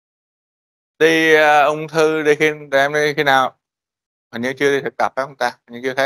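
A man lectures calmly, heard through an online call.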